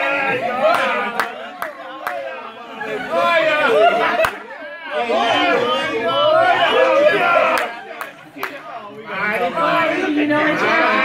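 A group of adults laughs loudly.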